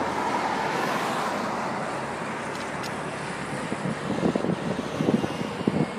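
A bus engine rumbles as it passes.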